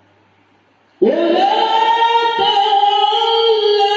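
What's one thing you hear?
A man chants loudly through a microphone in a large echoing room.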